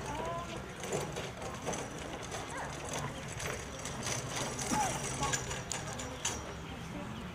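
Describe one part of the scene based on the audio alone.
Young women talk quietly in the distance outdoors.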